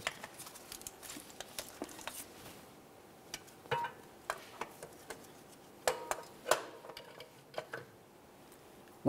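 A metal tool clicks and taps against engine parts.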